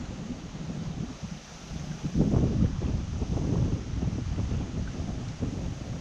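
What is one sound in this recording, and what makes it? A shallow stream flows and ripples over stones.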